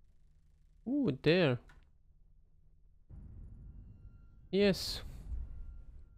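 Short electronic menu tones chime twice.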